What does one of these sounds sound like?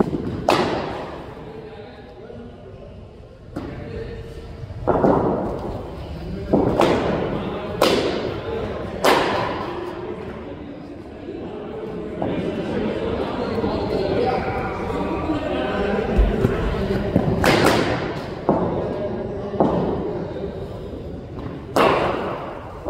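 A cricket bat strikes a ball with sharp cracks that ring in an echoing hall.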